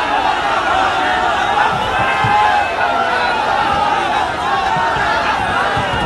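Hands bang and slap on a car's body.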